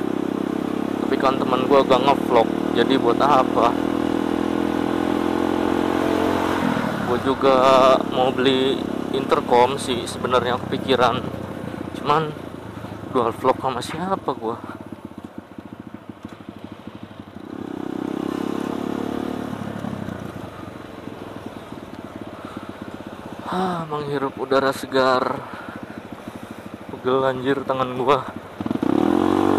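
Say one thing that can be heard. A motorcycle engine hums up close and revs as it rides along.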